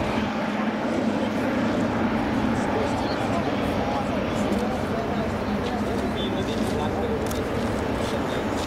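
A jet airliner's engines roar steadily as the plane rolls past.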